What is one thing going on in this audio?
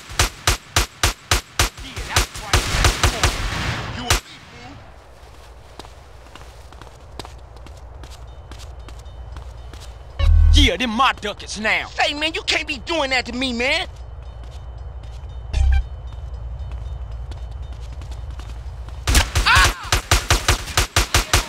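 Rapid gunshots fire in quick bursts.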